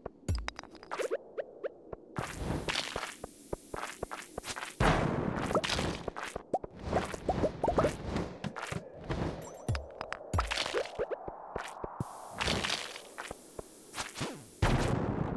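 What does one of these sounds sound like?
Game monsters squeal and pop when hit.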